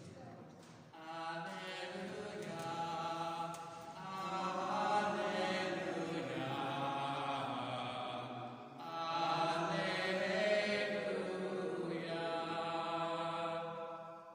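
A man sings loudly in a large echoing hall.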